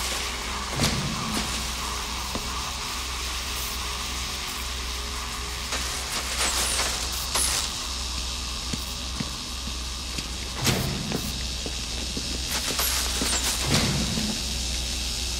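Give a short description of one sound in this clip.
Electricity crackles and zaps in short bursts.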